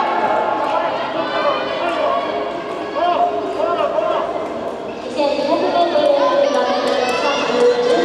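Spectators shout in a large echoing hall.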